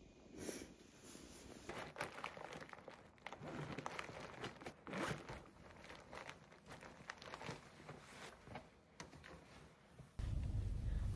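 A fabric bag rustles as it is handled.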